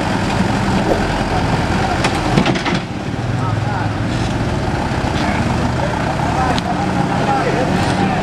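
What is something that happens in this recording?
A wheel loader's diesel engine roars nearby.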